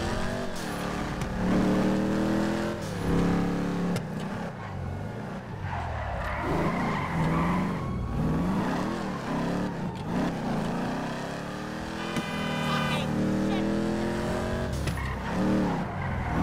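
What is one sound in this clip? A car engine revs and roars, rising and falling in pitch as it shifts gears.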